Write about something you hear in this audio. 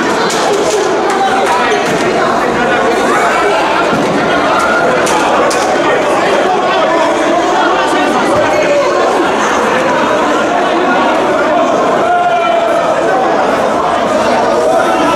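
A crowd of young people chatters and shouts, echoing in a large hall.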